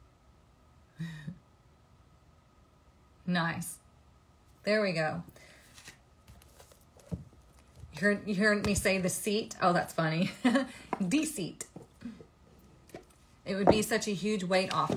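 A young woman talks close by, calmly and warmly.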